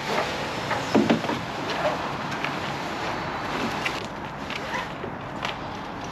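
A ratchet strap clicks as a man tightens it.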